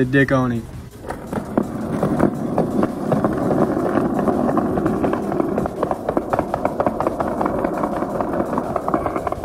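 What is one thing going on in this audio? Skateboard wheels rumble over concrete, clicking over the joints in the pavement.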